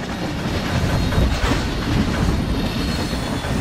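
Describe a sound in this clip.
A steam train rumbles and chugs along the tracks.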